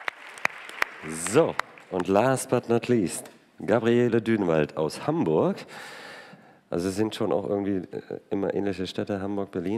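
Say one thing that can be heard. A man on a panel speaks through a microphone.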